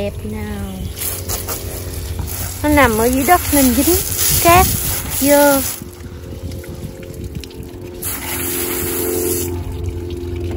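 A hose nozzle sprays water in a hissing jet.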